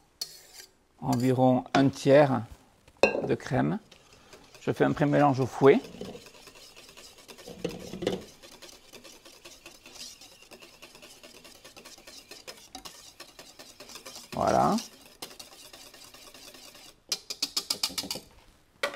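A wire whisk clicks and scrapes rapidly against a metal bowl.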